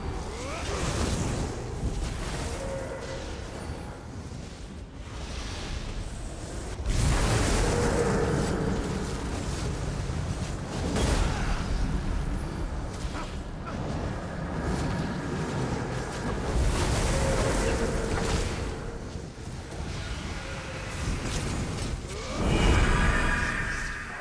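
Magic spells crackle and burst with explosions in fantasy game combat.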